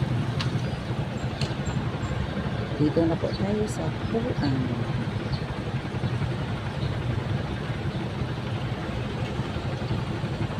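A small motor engine rumbles steadily.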